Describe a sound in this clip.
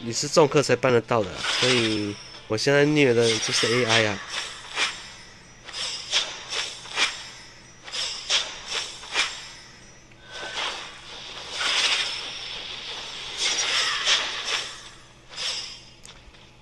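Sword strikes and magic blasts clash in rapid bursts.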